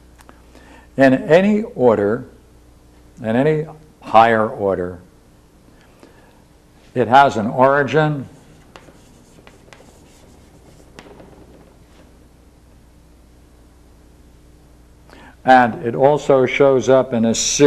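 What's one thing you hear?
An elderly man speaks calmly in a lecture, in bursts with pauses.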